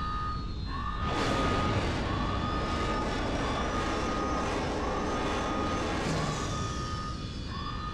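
A starfighter roars along with a loud rushing whoosh.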